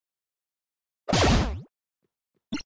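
A retro video game plays battle sound effects.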